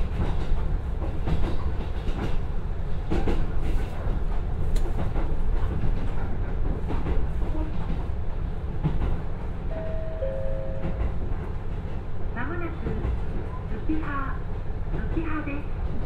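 A diesel railcar engine rumbles steadily from close by.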